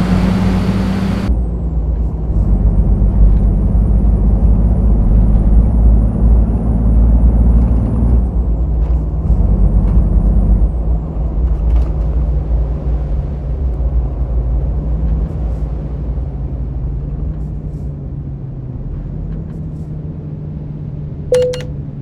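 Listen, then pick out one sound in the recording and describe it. A truck engine rumbles steadily and slowly winds down.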